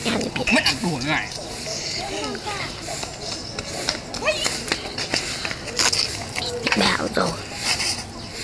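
Young children laugh and shout playfully close by.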